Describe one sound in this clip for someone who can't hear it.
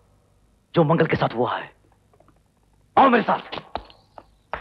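A man speaks with feeling, close by.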